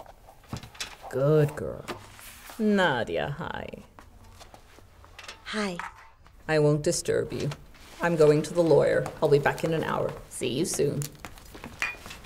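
An older woman speaks quietly up close.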